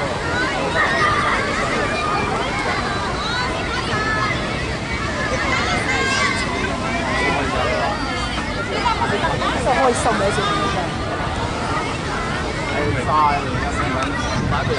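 Many young children shout and chatter excitedly outdoors.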